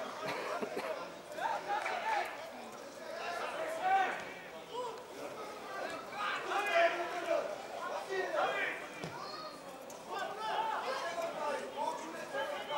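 Men shout and call to each other across an open outdoor pitch.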